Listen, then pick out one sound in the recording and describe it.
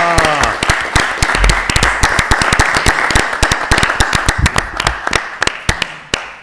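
A small group of people applauds in a large room.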